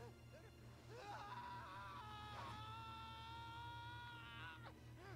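A young man screams long and loud in anguish.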